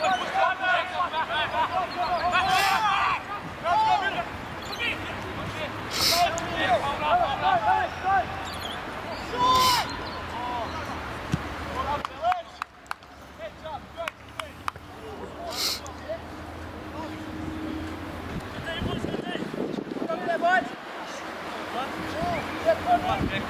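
Young men shout loudly to each other outdoors.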